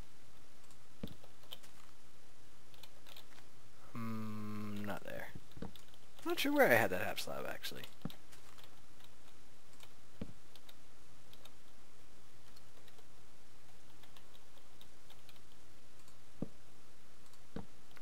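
Wooden blocks thud softly as they are placed.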